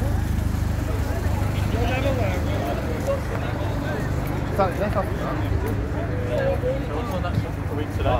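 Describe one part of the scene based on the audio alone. Young men talk in a loose crowd outdoors.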